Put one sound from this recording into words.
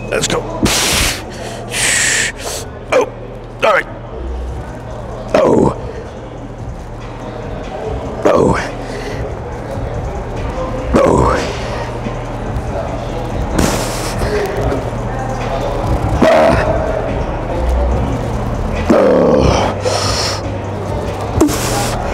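Weight plates clank as an exercise machine is pulled and released.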